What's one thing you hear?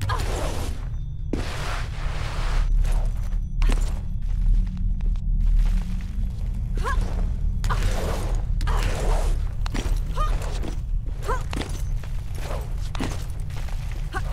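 Hands grab and scrape on stone ledges with short thuds.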